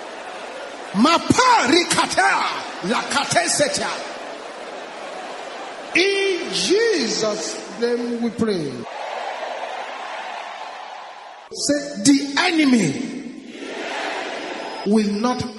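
A man preaches loudly and with fervour through a microphone.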